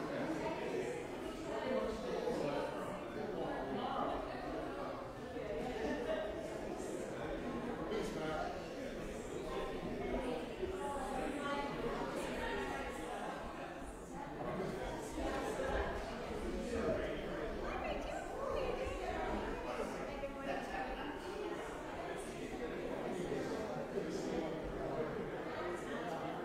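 Several adult men and women chat quietly in a large echoing hall.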